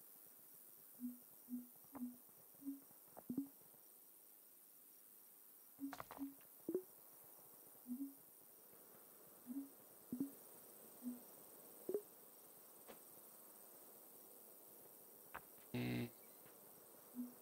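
Short soft electronic blips sound again and again as building outlines are placed.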